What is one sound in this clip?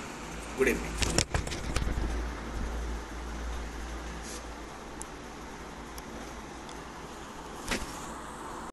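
A phone rustles and knocks as it is handled.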